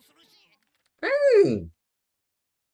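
A man lets out a sudden loud, drawn-out cry that falls in pitch.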